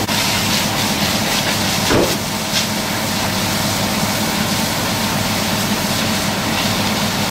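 A high-pressure hose sprays water hissing onto paving and a wall outdoors.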